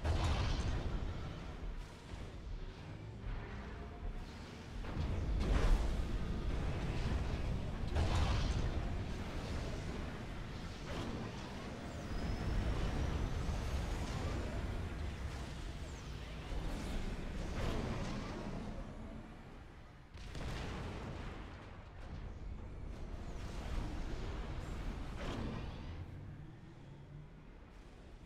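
Guns fire in rapid bursts, with loud blasts now and then.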